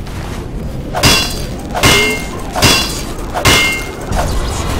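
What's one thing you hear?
A wrench clangs repeatedly against a metal machine.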